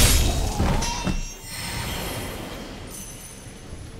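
A magical shimmer rings out brightly.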